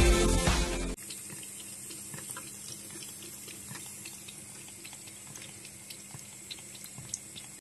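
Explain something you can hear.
Water trickles thinly from a tap.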